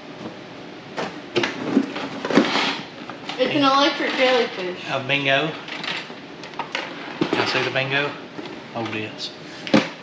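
Cardboard boxes rustle and thump as items are moved.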